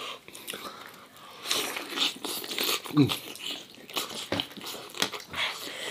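A man chews crunchy roast chicken close to the microphone.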